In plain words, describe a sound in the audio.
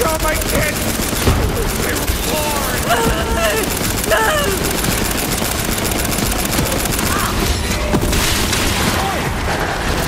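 Energy blasts crackle and explode.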